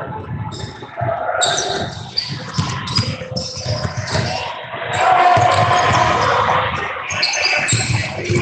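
Players and spectators shout and call out in a large echoing gym.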